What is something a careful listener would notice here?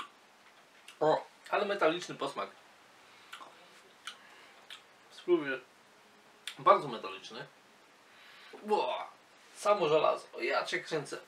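A man talks calmly and close by, in short bursts with pauses.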